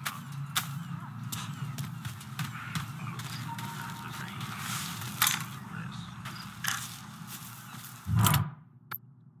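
Footsteps crunch on dry grass.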